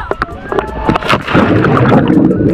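A body splashes into the sea.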